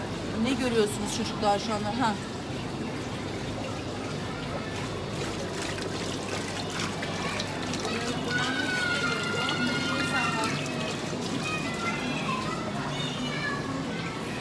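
Water splashes and bubbles steadily into a tank.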